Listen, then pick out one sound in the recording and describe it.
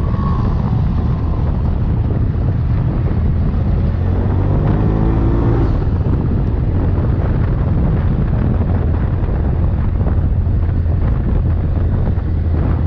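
An off-road vehicle's engine drones steadily up close.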